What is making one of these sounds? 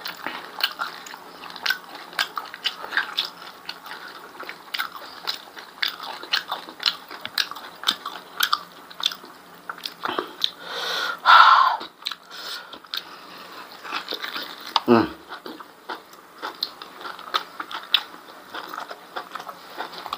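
A man chews and smacks his lips wetly close to a microphone.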